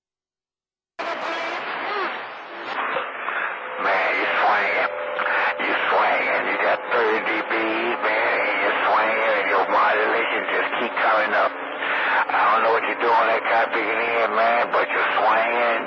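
A radio receiver plays a crackly transmission through its loudspeaker.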